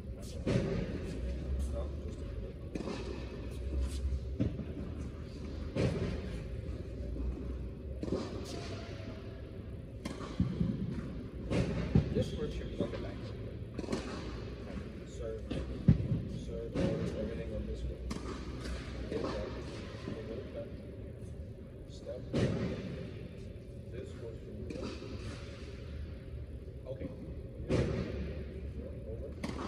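A man talks calmly in a large echoing hall.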